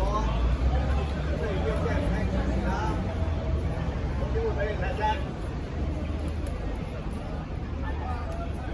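A crowd of young people chatters and calls out outdoors.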